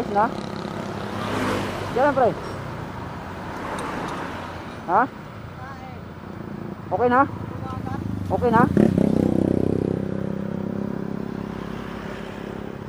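Metal tools clink against a motorcycle wheel.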